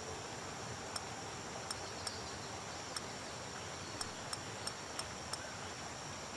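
Soft interface clicks tick now and then as items are moved.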